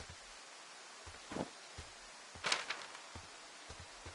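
A paper map rustles as it is folded away.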